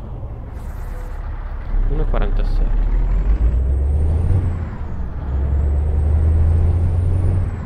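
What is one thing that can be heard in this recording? A truck engine rumbles low and grows louder as the truck pulls away.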